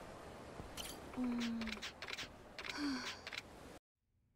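A young woman speaks in an upset voice.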